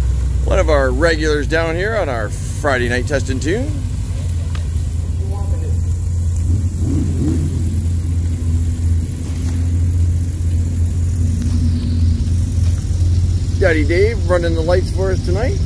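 A car engine revs sharply up and down several times.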